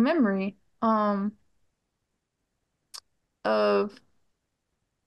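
A middle-aged woman speaks over an online call in short phrases.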